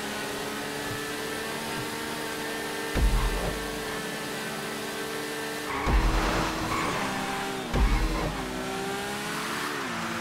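A motorcycle engine runs at speed, its pitch rising and dropping as it shifts gears.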